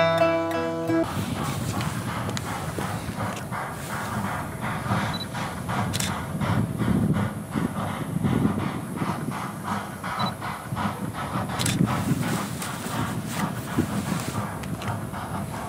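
A steam locomotive chuffs rhythmically as it works up the line.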